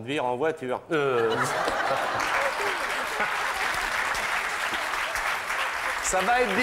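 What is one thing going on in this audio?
An audience laughs and applauds in a large room.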